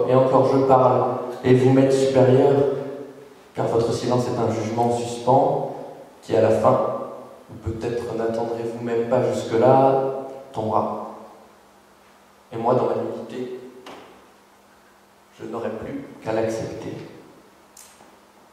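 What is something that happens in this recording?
A man speaks calmly into a microphone, heard close.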